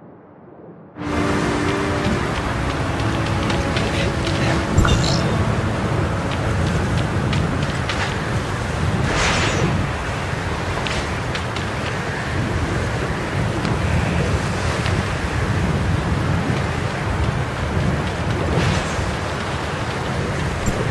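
Footsteps run over sand.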